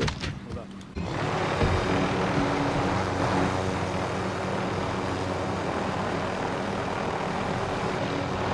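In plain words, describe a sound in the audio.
A helicopter's rotor drones loudly and steadily in flight.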